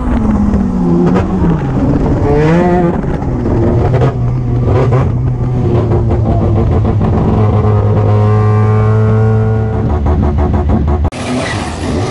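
A race car engine roars loudly from inside the cockpit, revving up and down.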